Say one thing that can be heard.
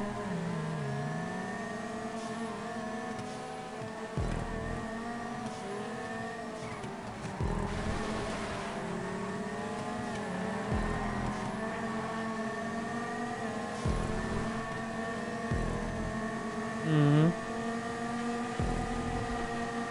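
Tyres screech as a car drifts through bends.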